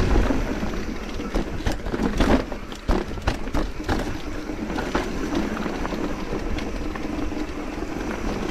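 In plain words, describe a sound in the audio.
A bicycle frame and chain rattle and clatter over bumps.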